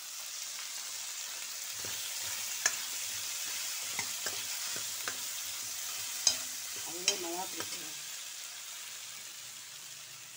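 Shallots sizzle as they are stirred in hot oil.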